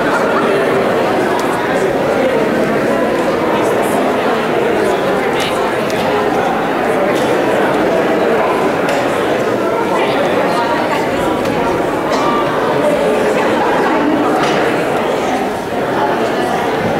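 A cello plays softly.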